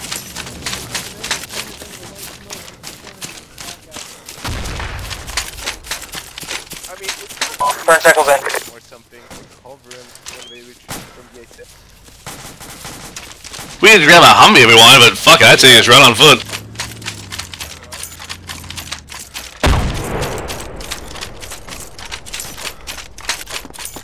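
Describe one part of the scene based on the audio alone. Footsteps swish through long grass.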